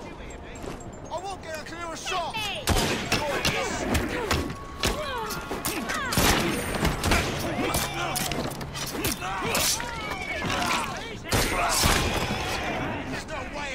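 Men grunt and shout while fighting.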